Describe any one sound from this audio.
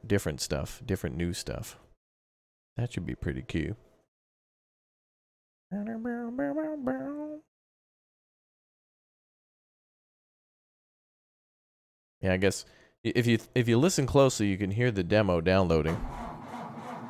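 A young man talks with animation close to a microphone.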